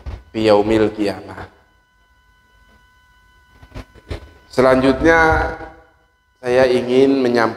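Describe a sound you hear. A man speaks loudly nearby, pausing between phrases.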